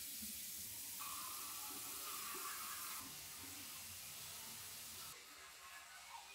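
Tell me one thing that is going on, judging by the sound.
An electric toothbrush buzzes.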